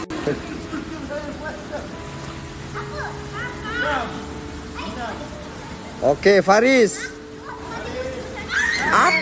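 Young people in a pool talk and call out to each other.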